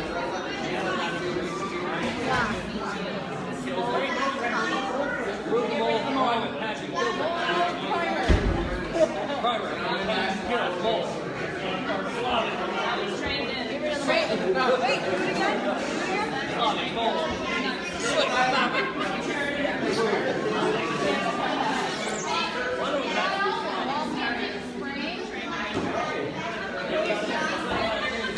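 Many voices of men and women chatter at once in a crowded, echoing room.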